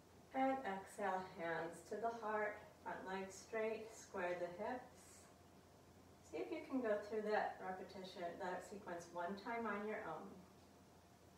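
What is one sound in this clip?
A woman speaks calmly and slowly, as if giving instructions.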